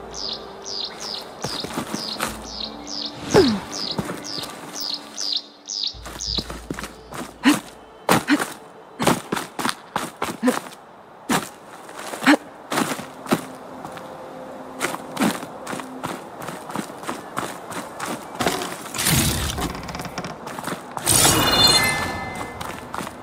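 Footsteps scuff and tap on rock.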